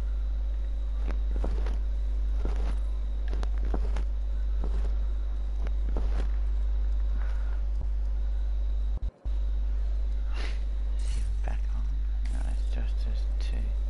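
Footsteps tread on a hard floor indoors.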